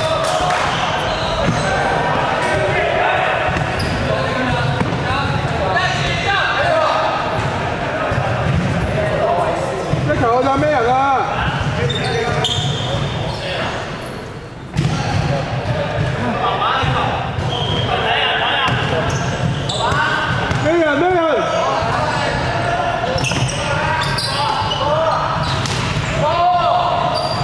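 Several young men talk and call out in a large echoing hall.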